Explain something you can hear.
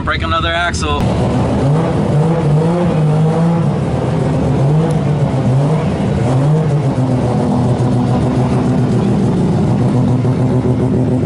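A sports car engine rumbles and revs nearby outdoors.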